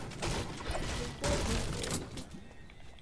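A pickaxe strikes a wooden crate with hard knocks.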